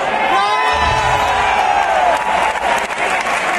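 A nearby woman cheers loudly.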